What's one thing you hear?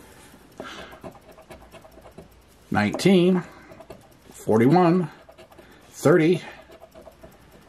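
A coin scrapes repeatedly across a scratch card.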